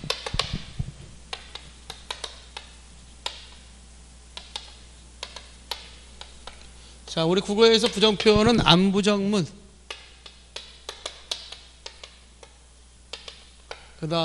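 Chalk taps and scrapes on a board.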